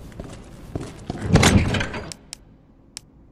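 A crate lid opens with a heavy clunk.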